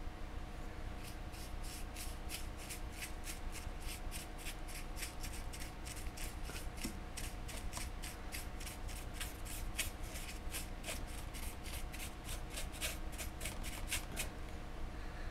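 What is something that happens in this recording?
A stiff brush dabs and scratches in quick, regular strokes.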